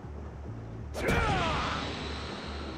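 A burst of earth whooshes up with a loud rush.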